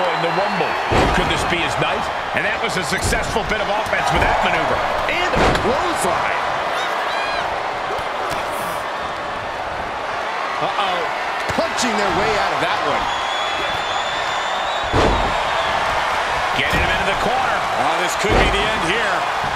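Bodies slam heavily onto a wrestling ring's canvas.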